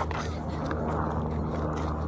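A young boy laughs.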